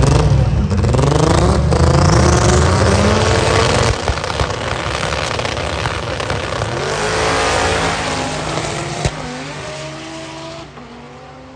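A race car engine roars loudly and revs as it speeds away.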